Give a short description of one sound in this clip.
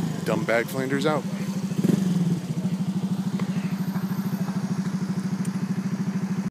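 A car engine idles nearby with a steady throbbing rumble.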